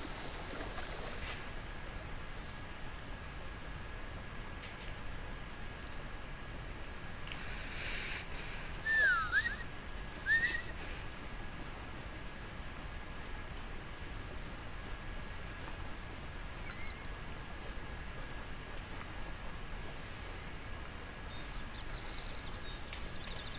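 Water laps gently against a shore.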